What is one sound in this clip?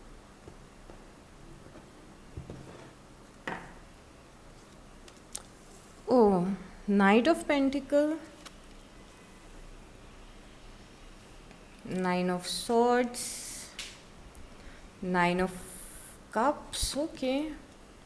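Playing cards slide and tap on a wooden table.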